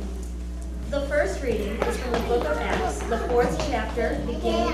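A woman speaks calmly into a microphone, heard over loudspeakers in an echoing room.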